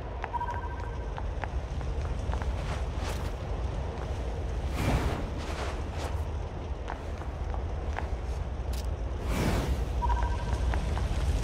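Quick footsteps crunch over loose rubble.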